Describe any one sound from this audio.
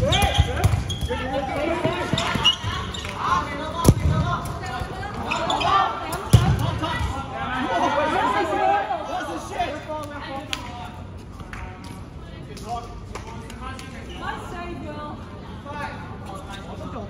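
Young people shout and call out with animation in a large echoing hall.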